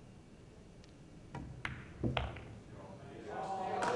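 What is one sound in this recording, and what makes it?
Billiard balls click together.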